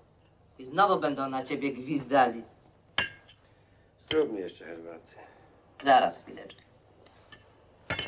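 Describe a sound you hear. Cutlery scrapes on a plate.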